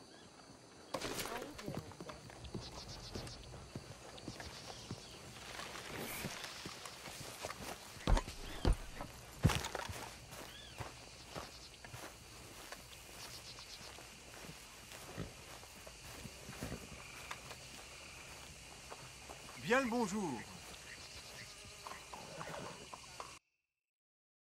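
Footsteps crunch on grass and a dirt path.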